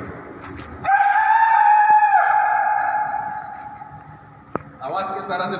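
A man shouts a long call through cupped hands, echoing loudly around a large domed hall.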